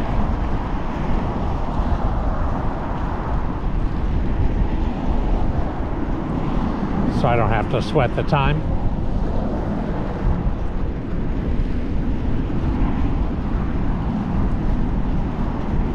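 Wind buffets the microphone steadily outdoors.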